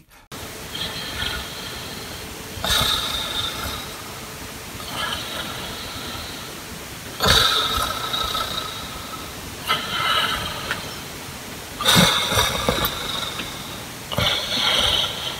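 A man snores loudly and rhythmically close by.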